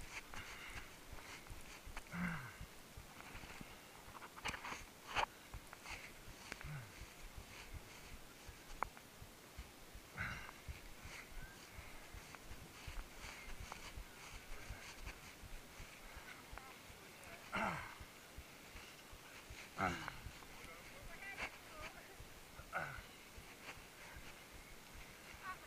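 Footsteps thud and crunch on a muddy forest trail.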